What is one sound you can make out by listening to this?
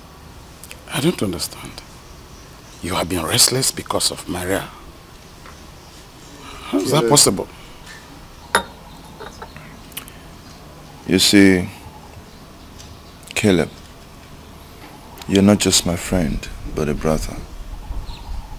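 An older man speaks gravely nearby.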